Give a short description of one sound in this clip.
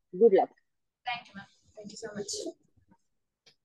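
A young woman answers quietly over an online call.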